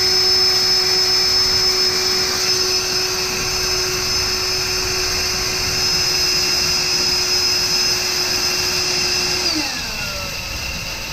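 A power tool motor whirs steadily close by, then winds down.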